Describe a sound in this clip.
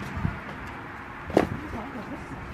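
A cardboard box is lifted with a soft thump.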